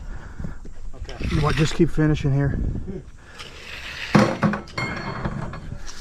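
A hand tool scrapes across wet concrete.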